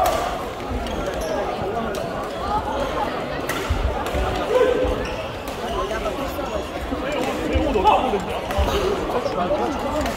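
Shuttlecocks are struck with rackets in sharp pops.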